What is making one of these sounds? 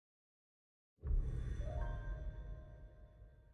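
Soft game music plays with a low rumble.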